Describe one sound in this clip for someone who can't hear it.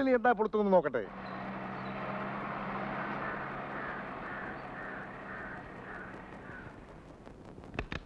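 A car engine hums as a car drives slowly up a driveway.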